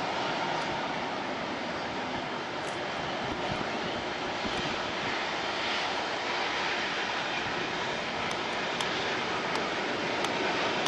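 A jet airliner roars steadily overhead in the distance.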